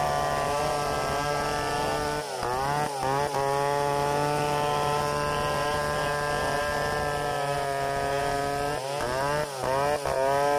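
A second two-stroke chainsaw cuts into a log.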